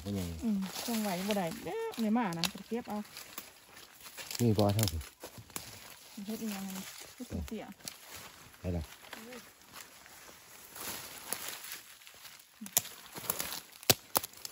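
Dry leaves crunch and rustle underfoot.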